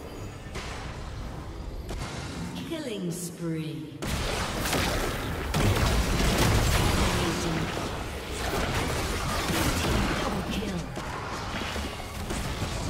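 Magic spells burst and whoosh in a fast-paced fight.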